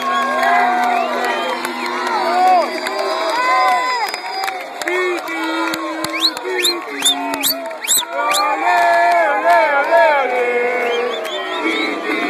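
A large crowd sings and chants loudly outdoors.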